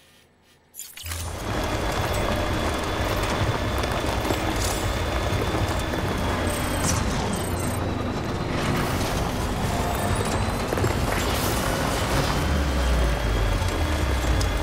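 A vehicle engine rumbles loudly as a truck drives over rough ground.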